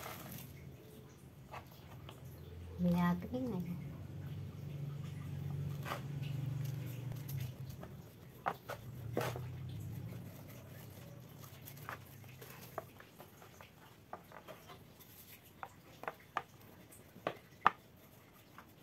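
A rolling pin rolls over bread on a plastic board.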